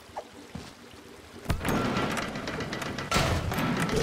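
A heavy mechanical press slams down with a clank.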